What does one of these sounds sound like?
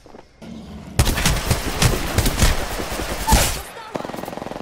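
A gun fires in bursts in a video game.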